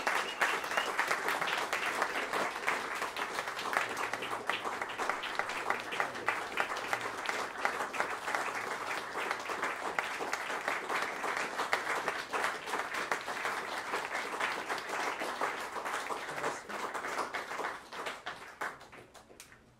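An audience claps loudly in a room.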